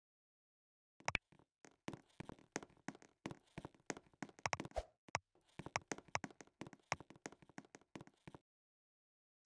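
Quick punches thump against a punching bag.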